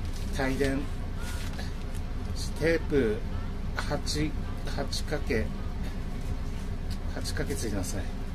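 A plastic packet crinkles and rustles in someone's hands.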